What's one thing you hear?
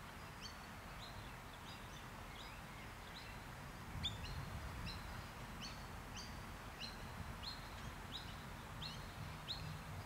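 Birds chirp repeatedly nearby.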